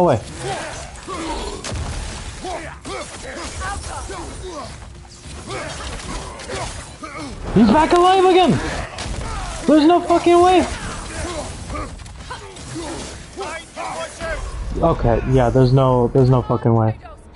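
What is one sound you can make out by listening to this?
Metal weapons clang and thud in a fierce fight.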